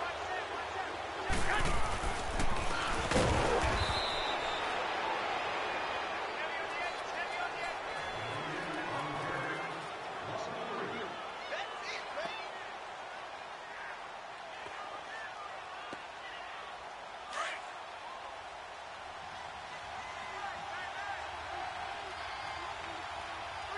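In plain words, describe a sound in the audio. A large stadium crowd roars and murmurs throughout.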